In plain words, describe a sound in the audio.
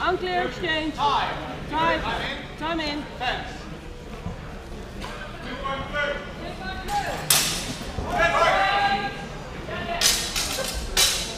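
Spectators shout and cheer loudly in a large echoing hall.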